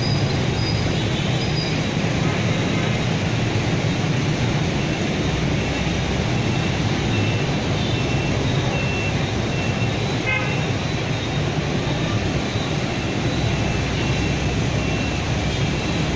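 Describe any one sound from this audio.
Dense city traffic hums and roars steadily below, with many motorbike engines.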